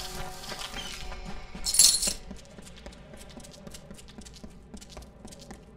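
Footsteps thud quickly on dry ground.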